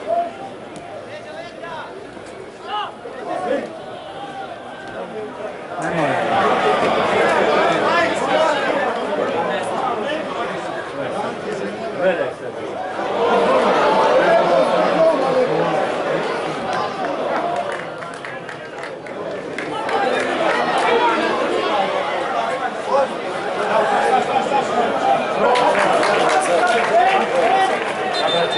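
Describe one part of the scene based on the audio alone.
A large crowd chants and cheers in an open stadium, the noise swelling in waves.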